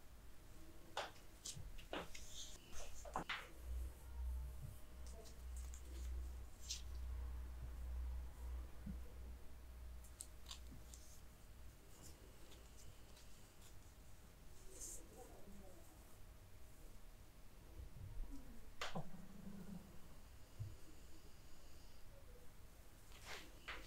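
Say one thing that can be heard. Fingers tap and click softly, close by.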